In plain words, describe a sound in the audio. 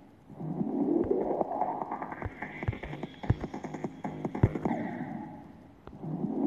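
A young boy talks into a microphone.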